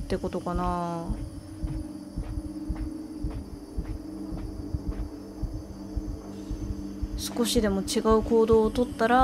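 Many footsteps march in step on a hard floor.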